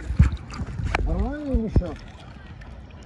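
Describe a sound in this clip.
A man's muffled voice sounds through a snorkel mask.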